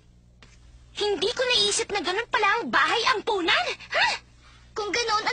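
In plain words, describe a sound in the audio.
A young woman talks with animation.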